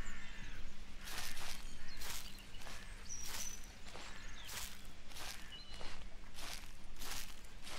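Footsteps rustle through tall dry grass at a steady walking pace.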